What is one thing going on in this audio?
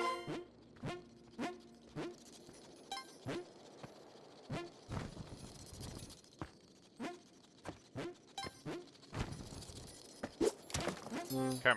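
Short video game sound effects chime and thud repeatedly.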